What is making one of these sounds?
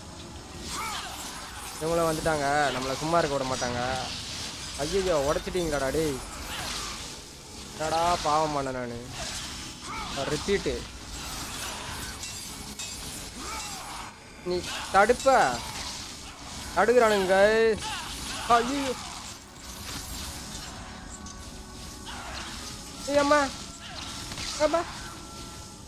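Blades slash and clang in a fight.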